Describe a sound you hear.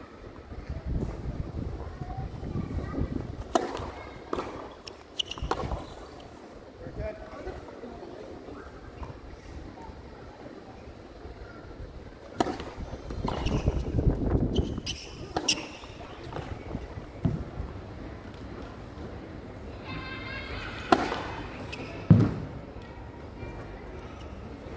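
Tennis shoes squeak and scuff on a hard court.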